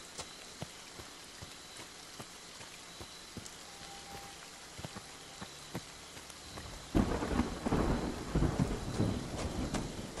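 Footsteps walk steadily over the ground.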